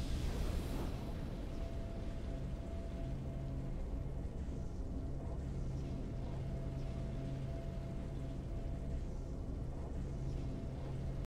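A triumphant tune plays softly.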